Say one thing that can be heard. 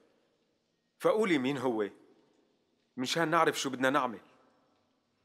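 An elderly man speaks quietly and sadly.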